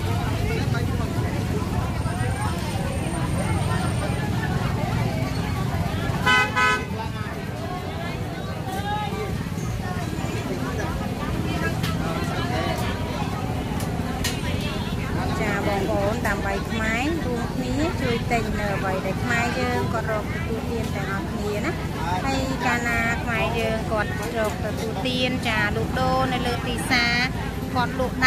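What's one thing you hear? A busy crowd of market voices chatters all around.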